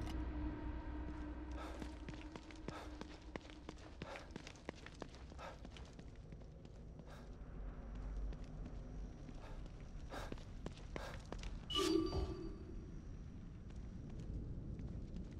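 Footsteps patter on wet pavement.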